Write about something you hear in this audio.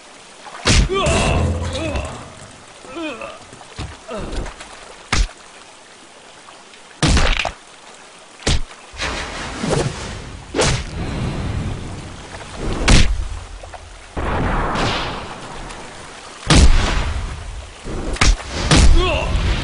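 A man groans and shouts in pain.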